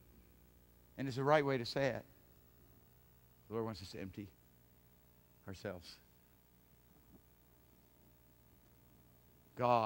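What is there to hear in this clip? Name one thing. A middle-aged man speaks to an audience through a microphone, in short bursts with long pauses.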